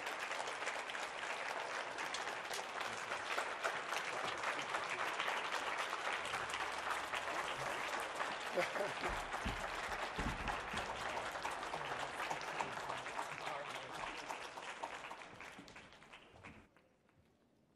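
An audience applauds loudly in a hall, then the applause fades.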